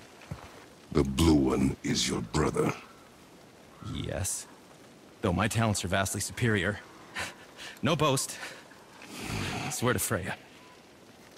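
A man speaks with animation, up close.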